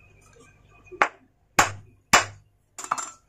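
A wooden block knocks against a metal engine casing in sharp blows.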